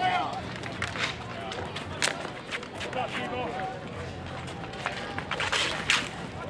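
Street hockey sticks clack against a ball and the asphalt outdoors.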